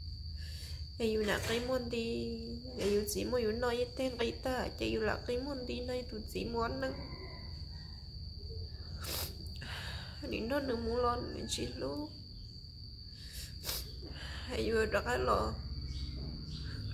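A middle-aged woman speaks calmly close by.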